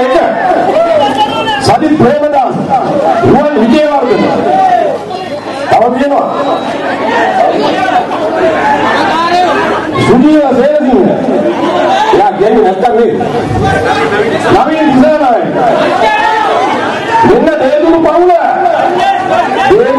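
A man speaks forcefully into microphones over loudspeakers, outdoors.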